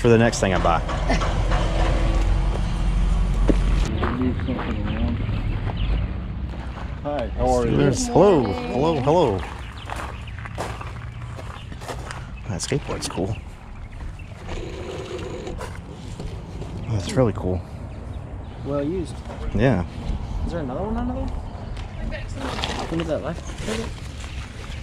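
A man talks close by in a casual way.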